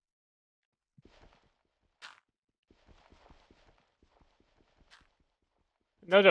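Stone blocks crack and crumble as a pickaxe digs into them.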